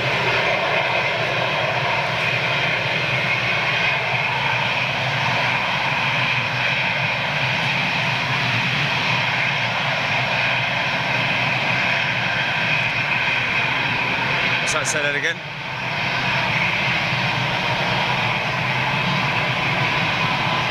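A jet engine hums steadily as a plane taxis.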